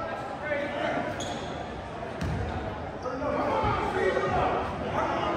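A crowd of spectators chatters throughout a large echoing gym.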